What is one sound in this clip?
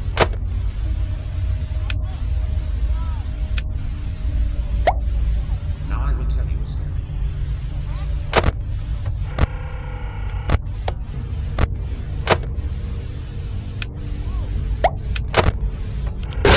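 Sharp clicks sound now and then.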